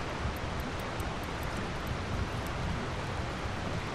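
A safe's combination dial clicks as it turns.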